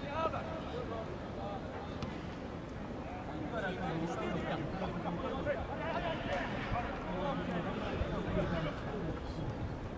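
A sparse crowd of spectators in a stadium chatters and calls out.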